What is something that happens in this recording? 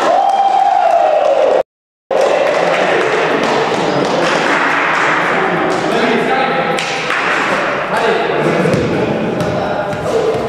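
Young men talk and call out together in a large echoing hall.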